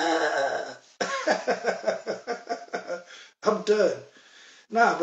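A man laughs heartily.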